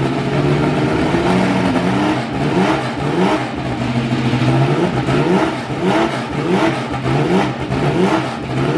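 A racing car engine revs up and down again and again.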